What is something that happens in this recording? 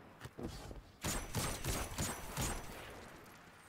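Rapid gunshots fire in a game.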